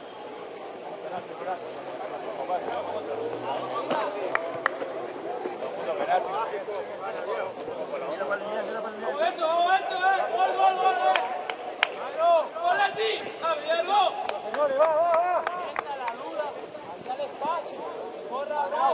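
Young men shout and call to each other across an open pitch outdoors.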